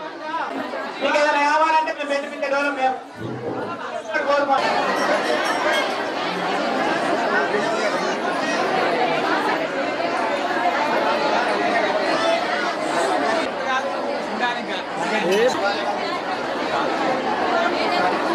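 A large crowd of men and women chatters loudly all around.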